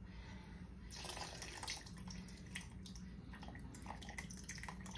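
Sauce pours from a jar into a pot.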